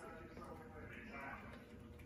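A cat eats from a bowl.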